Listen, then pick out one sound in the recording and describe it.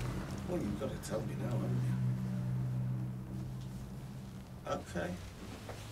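A middle-aged man speaks in a low, tense voice close by.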